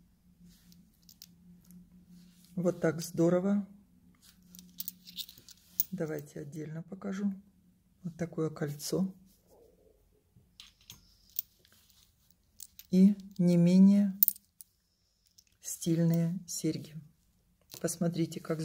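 Metal pendants clink softly as they are handled.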